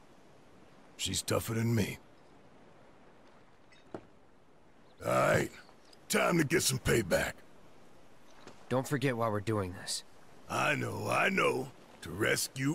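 A man speaks in a deep, gruff voice with animation.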